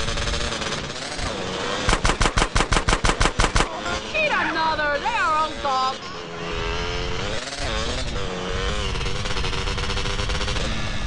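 A quad bike engine drones and revs steadily.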